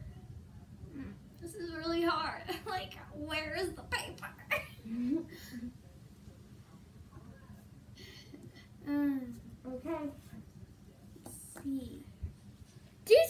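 A young girl talks and giggles close by.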